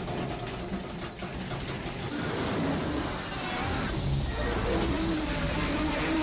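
Steam hisses loudly.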